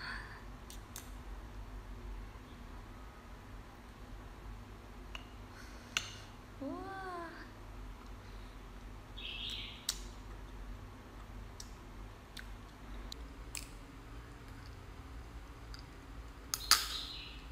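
Crab shells crack and snap close up.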